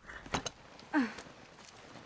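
A saddle's leather creaks as someone climbs onto a horse.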